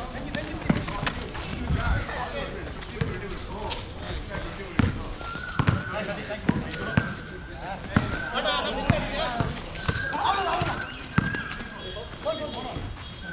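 A basketball bounces on a hard outdoor court.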